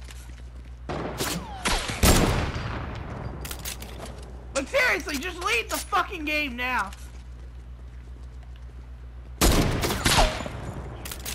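A rifle fires with a loud, echoing crack.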